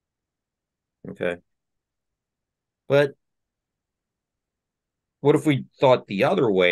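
A man speaks calmly through a microphone on an online call, in short bursts.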